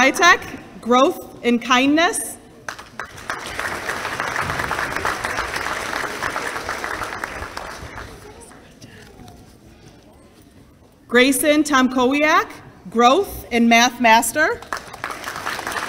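A woman reads out names through a microphone in a hall.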